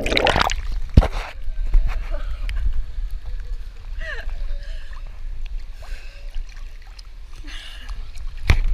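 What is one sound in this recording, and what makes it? Water laps gently in a pool.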